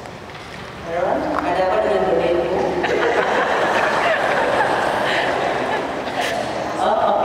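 A man talks nearby with a laugh in his voice.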